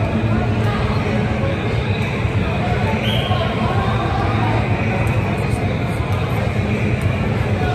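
Young men shout to each other across a large echoing indoor hall.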